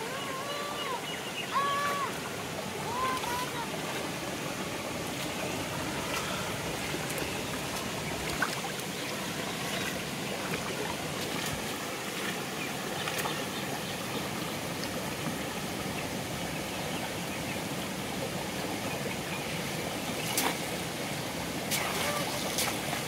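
Shallow water flows and burbles steadily outdoors.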